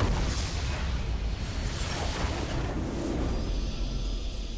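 Spell effects crash and burst loudly in a game fight.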